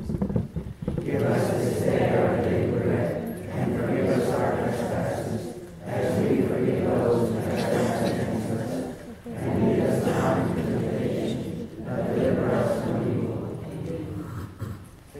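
Children recite together in unison.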